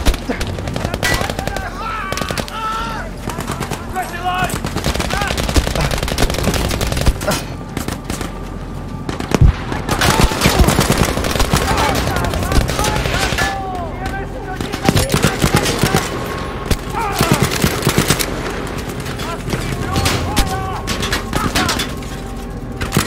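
Gunfire crackles and booms all around in a battle.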